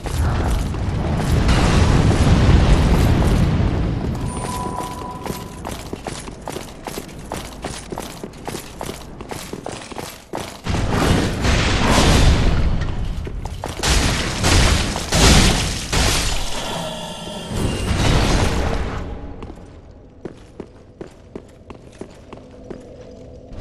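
Armoured footsteps clank quickly on stone.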